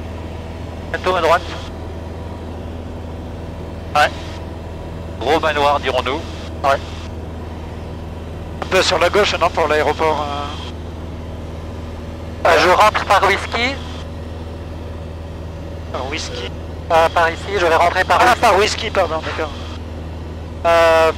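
A man speaks calmly over a headset intercom, in short bursts.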